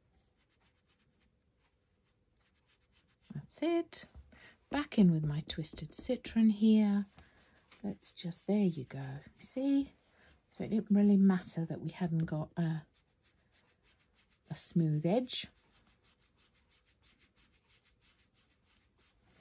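A foam applicator dabs softly on paper.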